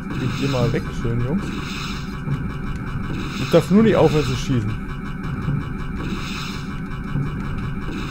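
Electronic game music plays steadily.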